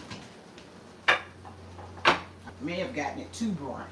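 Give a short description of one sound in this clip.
A glass baking dish is set down on a stone counter with a knock.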